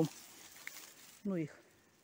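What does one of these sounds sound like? Leafy plant stems rustle as a hand pushes them aside.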